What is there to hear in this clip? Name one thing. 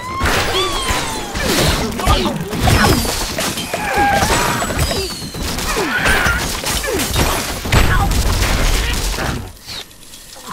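Wooden blocks crash and clatter as a tower collapses.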